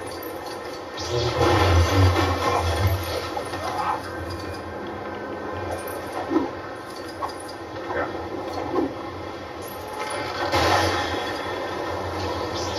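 Waves crash and surge loudly.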